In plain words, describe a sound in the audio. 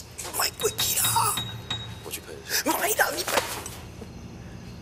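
A man pleads urgently in a strained voice close by.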